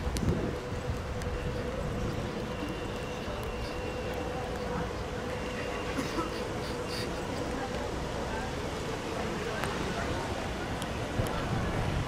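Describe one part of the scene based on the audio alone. A tram hums quietly as it rolls slowly past close by.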